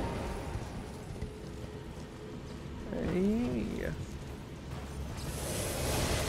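A horse gallops with heavy hoofbeats.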